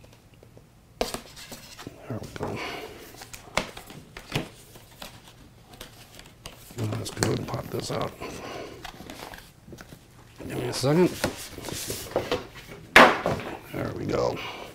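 Cardboard packaging rustles and scrapes under hands.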